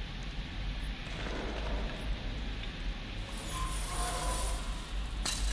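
A wooden plank creaks and scrapes as it is pried loose.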